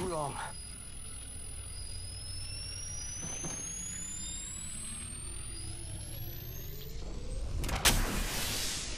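A video game healing device charges up with a rising electronic whine.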